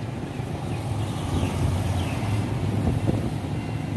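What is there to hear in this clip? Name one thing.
A motorbike engine hums as it passes by.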